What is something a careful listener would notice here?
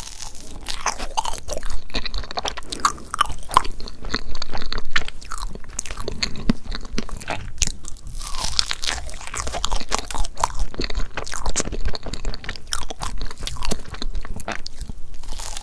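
A woman bites into soft layered cake close to a microphone.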